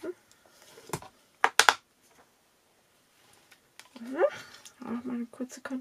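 A plastic block clicks down onto a surface.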